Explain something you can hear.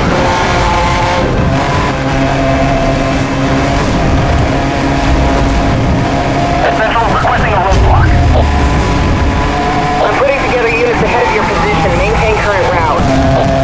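A sports car engine roars at high revs.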